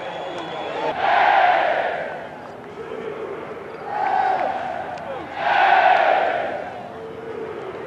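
A large crowd cheers outdoors in loud swelling waves.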